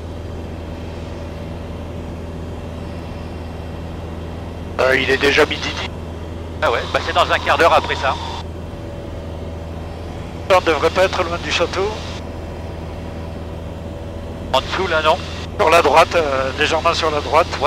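A small plane's propeller engine drones steadily.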